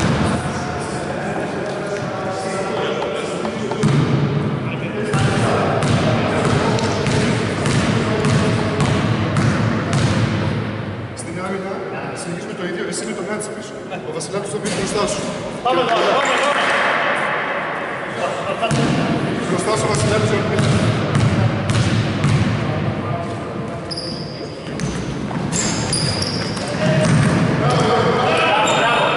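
A man shouts instructions loudly from nearby.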